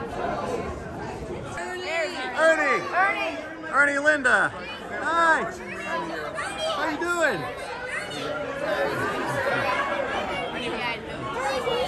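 A crowd of men and women chatters throughout.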